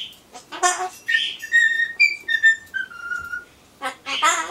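A parrot whistles in short falling notes.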